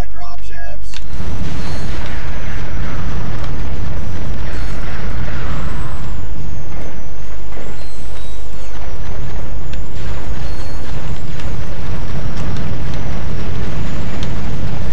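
Laser guns fire in rapid bursts.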